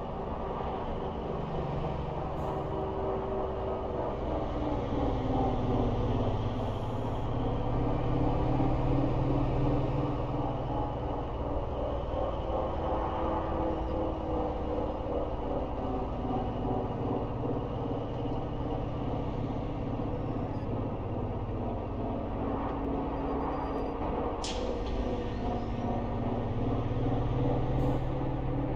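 A heavy truck engine rumbles steadily, its pitch rising and falling.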